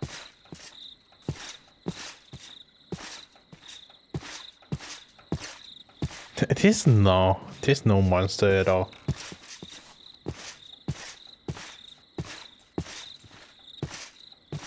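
Footsteps crunch steadily through grass.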